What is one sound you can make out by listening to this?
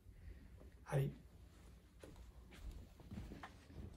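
A man gets up from a creaking wooden chair.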